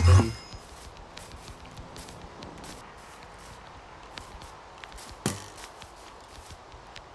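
Soft footsteps tread on grass at an even pace.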